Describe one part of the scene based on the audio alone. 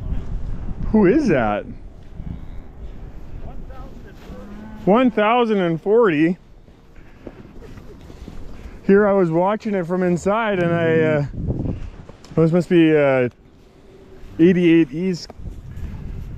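Cows moo loudly and repeatedly close by.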